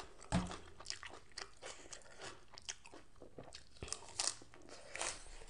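A woman chews crunchy lettuce loudly close to a microphone.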